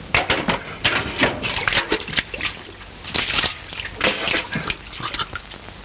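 Water splashes in a basin.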